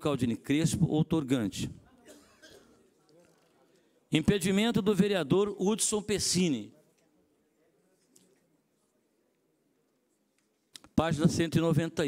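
An older man speaks calmly into a microphone, reading out in pauses.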